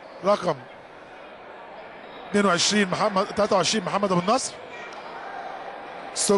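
A crowd murmurs softly in an echoing hall.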